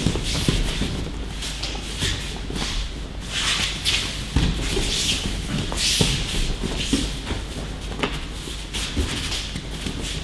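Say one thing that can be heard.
Feet shuffle and slide on mats.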